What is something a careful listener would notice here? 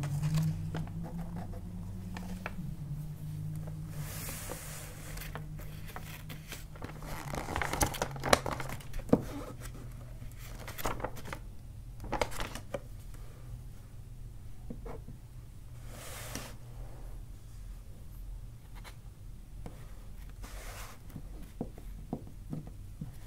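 A marker pen squeaks as it draws on plastic.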